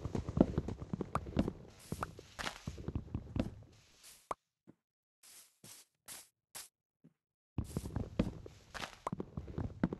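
Leaves rustle and crunch in quick, repeated bursts as blocks are broken.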